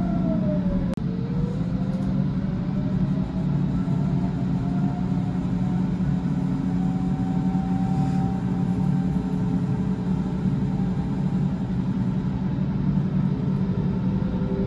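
An electric train rolls past with a steady low rumble.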